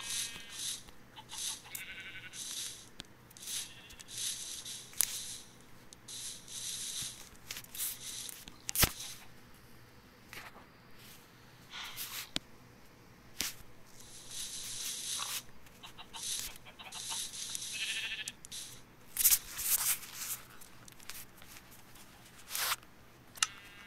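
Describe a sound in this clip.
Blocks crunch and thud as they are dug and placed.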